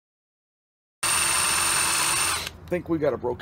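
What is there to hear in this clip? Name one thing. A power drill whirs loudly as it bores into metal.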